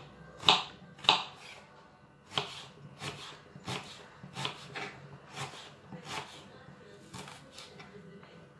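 A knife chops an onion on a wooden board with quick, sharp taps.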